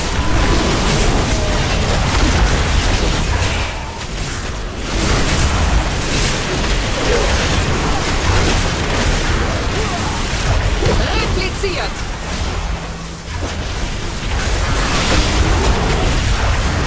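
Magic spells crackle and whoosh amid a busy battle.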